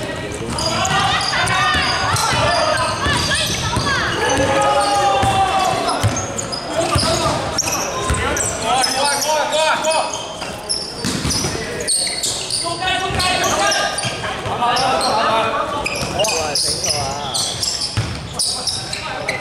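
Young men shout and call to each other in a large echoing hall.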